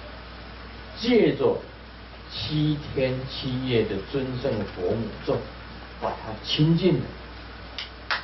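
An elderly man speaks calmly into a microphone.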